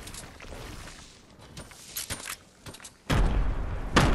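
Wooden planks knock into place as stairs are built.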